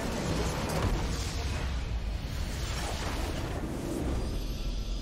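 A large building in a game explodes with a loud rumbling blast.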